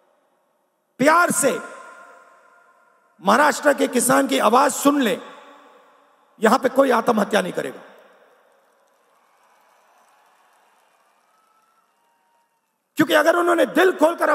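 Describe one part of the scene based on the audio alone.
A man speaks forcefully into a microphone, his voice booming and echoing through loudspeakers.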